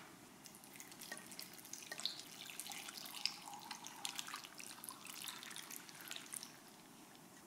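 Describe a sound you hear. Water pours into a pot with a soft trickle.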